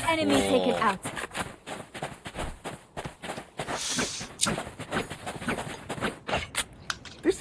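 Footsteps patter quickly on sandy ground.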